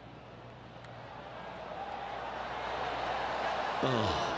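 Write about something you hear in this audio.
A crowd murmurs and cheers, growing louder.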